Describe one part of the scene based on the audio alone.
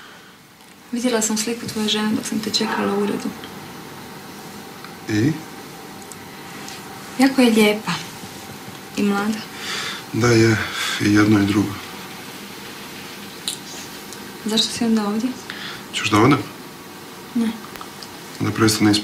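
A man speaks softly and calmly, close by.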